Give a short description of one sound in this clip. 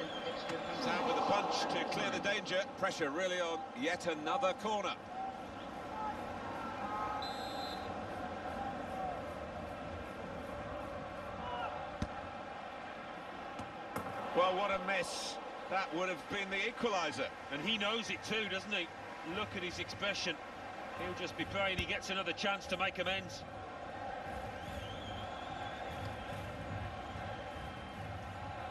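A stadium crowd murmurs steadily throughout.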